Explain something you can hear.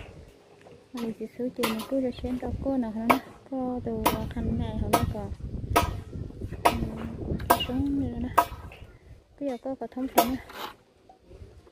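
A trowel taps and scrapes on concrete blocks.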